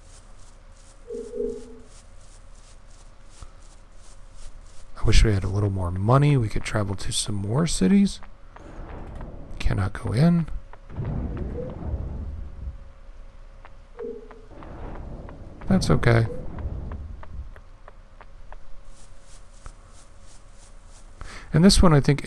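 Footsteps tap steadily on hard ground.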